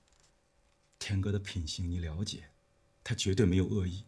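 A man speaks calmly and earnestly up close.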